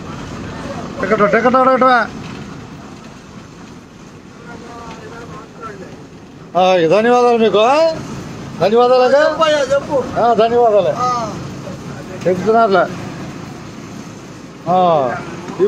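A middle-aged man shouts loudly close to the microphone.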